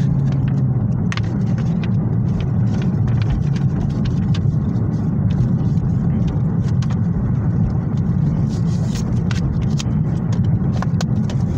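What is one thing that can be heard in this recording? A plastic disc case clicks and rattles in someone's hands.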